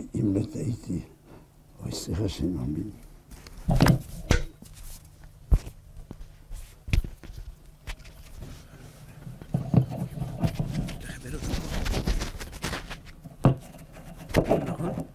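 An elderly man speaks calmly and clearly into a microphone.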